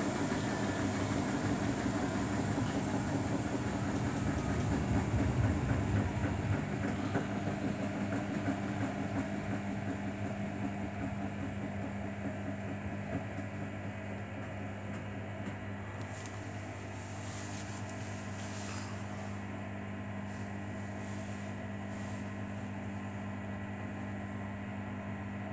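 A front-loading washing machine's drum turns, sloshing water and laundry.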